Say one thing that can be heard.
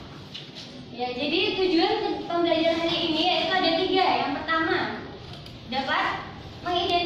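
A woman speaks loudly and with animation, close by.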